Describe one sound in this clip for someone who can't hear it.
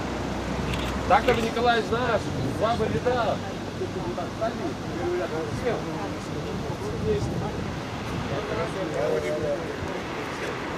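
A man speaks loudly outdoors, a little way off.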